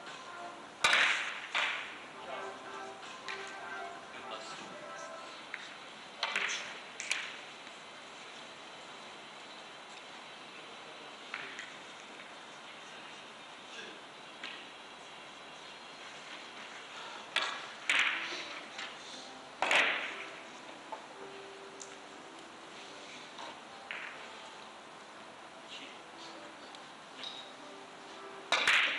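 Billiard balls click sharply against each other and knock off the table cushions.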